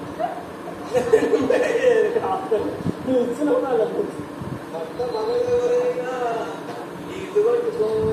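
A metal pot clanks as it is scrubbed.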